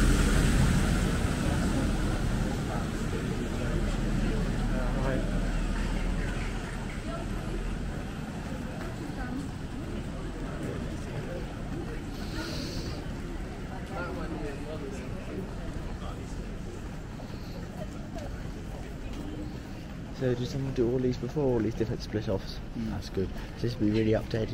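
Distant voices murmur along a busy street.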